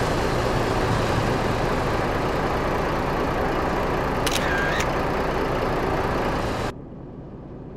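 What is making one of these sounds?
A truck engine rumbles steadily close by.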